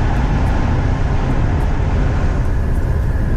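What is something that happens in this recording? Tyre noise echoes loudly inside a tunnel, then opens out.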